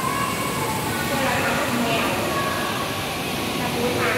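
Children chatter and call out nearby in a large echoing room.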